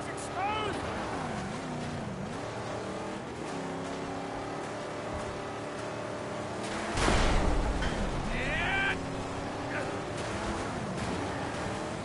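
Vehicles crash together with heavy metallic thuds.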